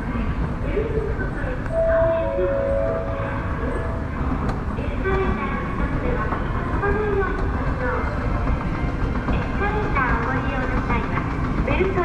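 An escalator hums and rumbles steadily as it moves.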